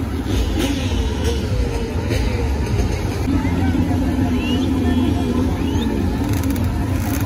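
A large crowd chatters and shouts outdoors.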